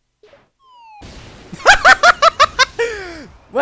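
An explosion booms and crackles loudly.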